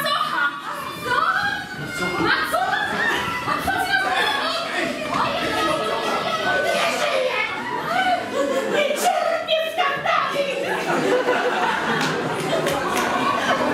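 Several men talk and shout with animation.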